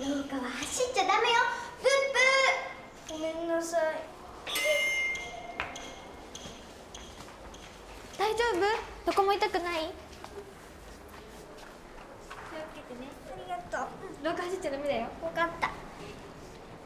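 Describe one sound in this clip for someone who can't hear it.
Young girls talk and squeal excitedly nearby.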